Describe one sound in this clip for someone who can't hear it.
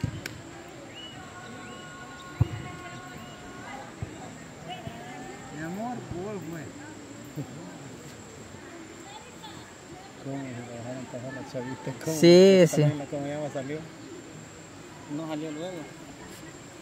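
Young women call out faintly in the distance.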